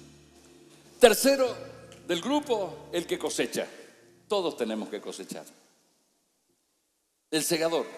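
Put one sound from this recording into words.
A man speaks through loudspeakers in a large echoing hall.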